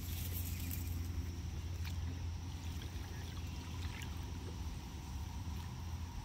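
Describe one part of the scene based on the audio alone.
A wire trap splashes and drips as it is lifted from the water.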